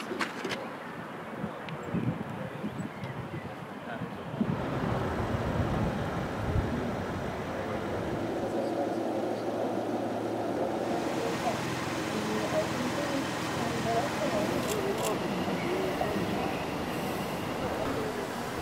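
A film soundtrack plays through loudspeakers outdoors.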